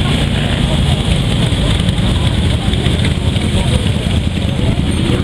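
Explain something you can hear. Many motorcycle engines rumble steadily as a large group rides past.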